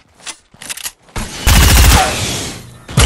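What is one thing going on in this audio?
A pistol fires loud shots.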